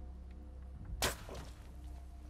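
A bow snaps as an arrow is loosed.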